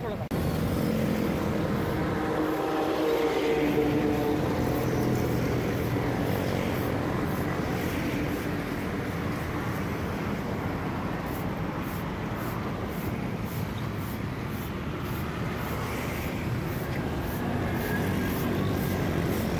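A broom scrapes and swishes across the road surface.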